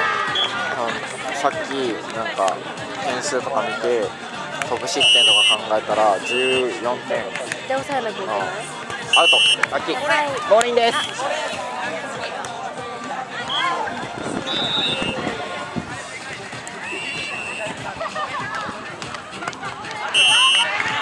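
Young people shout and chatter outdoors.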